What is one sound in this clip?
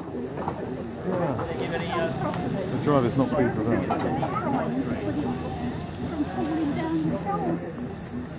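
A small steam locomotive hisses and chuffs as it pulls away.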